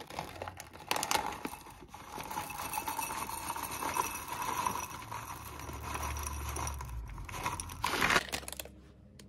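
Chocolate chips rattle as they pour into a glass.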